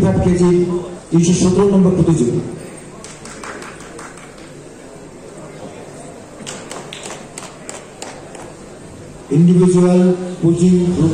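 A man announces over a loudspeaker in a large hall.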